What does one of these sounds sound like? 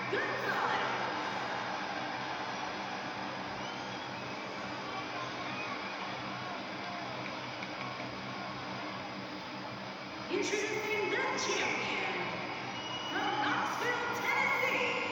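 A crowd cheers and roars steadily through a television speaker.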